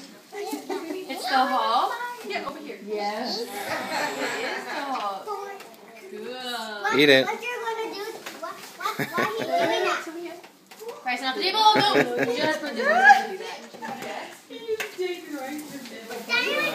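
A small boy babbles and squeals.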